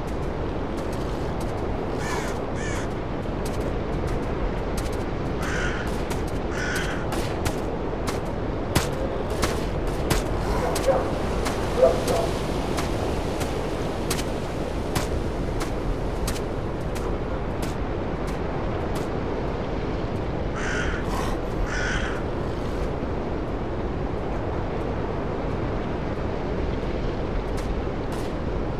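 Wind blows steadily through the trees outdoors.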